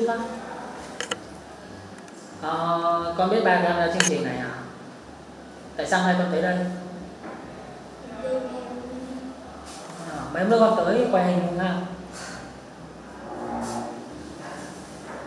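A young girl speaks softly and casually nearby.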